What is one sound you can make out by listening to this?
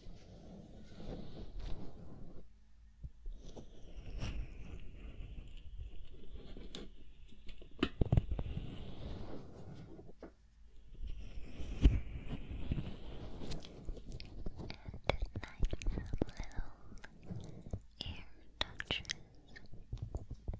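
Mouth sounds click and smack close to a microphone.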